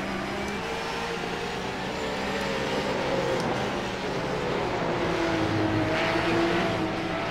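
Other racing car engines drone nearby.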